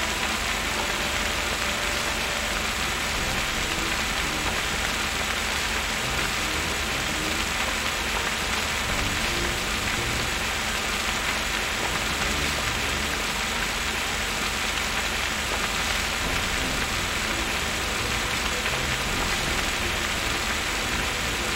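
A water hose sprays with a steady rushing hiss.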